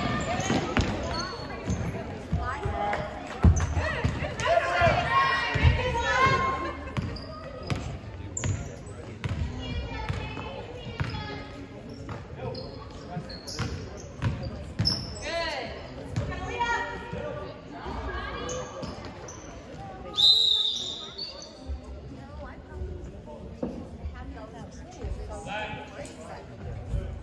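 Spectators nearby talk and cheer in a large echoing gym.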